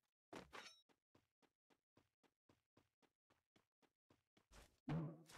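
Quick footsteps run over the ground.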